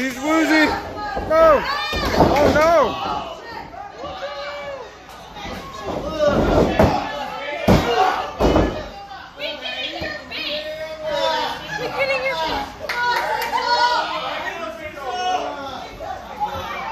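Spectators shout and cheer loudly nearby.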